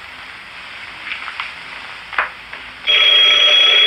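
A typewriter clacks as keys are struck.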